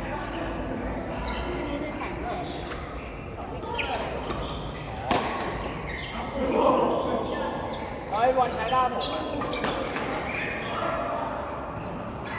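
Badminton rackets strike a shuttlecock with sharp taps in a large echoing hall.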